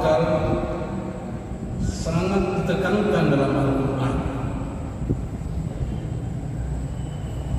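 An elderly man preaches through a microphone and loudspeakers in a large echoing hall.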